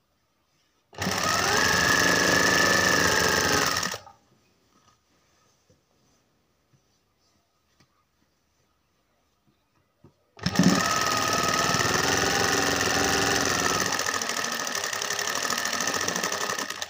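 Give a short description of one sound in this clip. A sewing machine runs, stitching fabric.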